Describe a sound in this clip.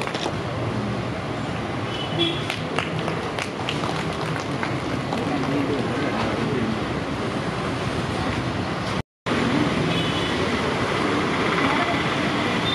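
A crowd of men and women murmur and chatter nearby.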